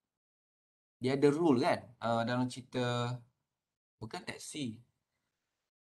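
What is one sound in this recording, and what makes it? A man speaks calmly through a microphone, in short phrases.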